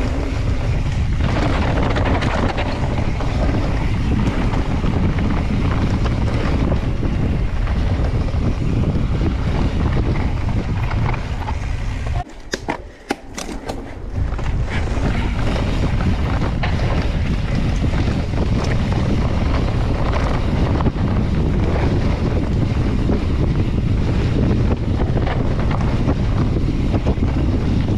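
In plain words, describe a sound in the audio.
Mountain bike tyres roll and crunch over a dirt trail.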